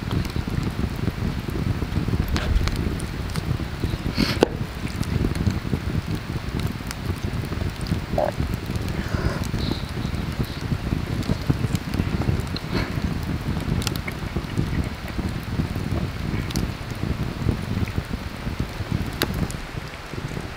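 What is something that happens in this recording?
A wood fire crackles steadily.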